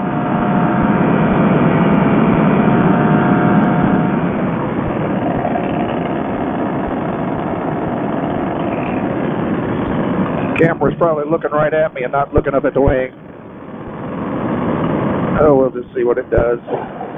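A paramotor engine roars steadily.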